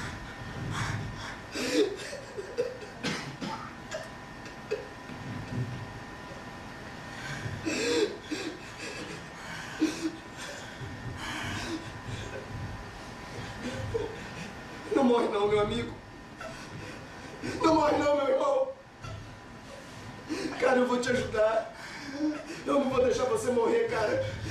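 A man speaks with feeling in a room that echoes a little.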